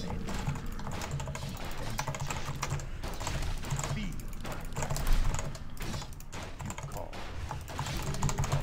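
Fantasy game battle sounds clash and ring out.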